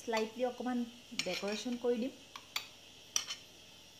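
A metal spoon scrapes and taps against a plate.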